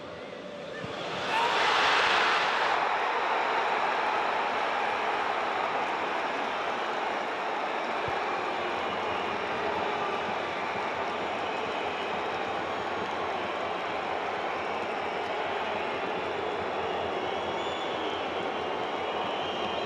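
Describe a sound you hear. A stadium crowd erupts in a loud, sustained roar.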